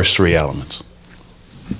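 A man speaks into a microphone in a calm voice.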